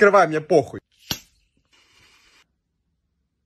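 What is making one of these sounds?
A cap pops off a plastic bottle with a hiss.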